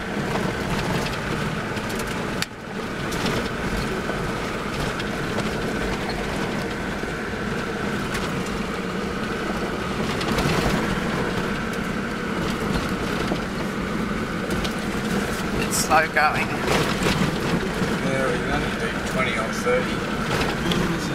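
Tyres rumble and crunch over a rough dirt track.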